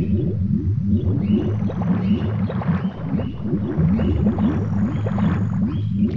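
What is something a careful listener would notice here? A cartoon character splashes while swimming through water in a game.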